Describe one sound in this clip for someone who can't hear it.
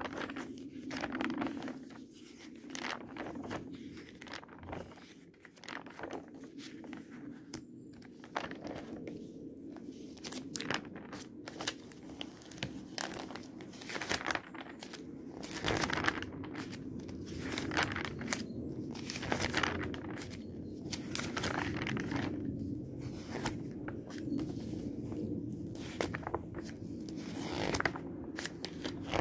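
Glossy magazine pages rustle and flip one after another, close by.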